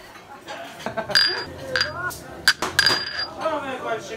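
A glass clinks down on a hard table.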